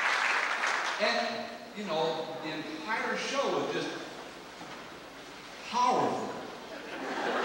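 A man calls out theatrically from a stage, heard from afar in a large hall.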